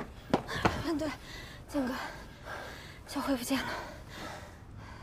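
A young woman speaks anxiously.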